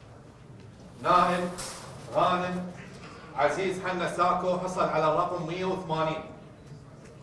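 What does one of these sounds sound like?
A man announces loudly through a microphone.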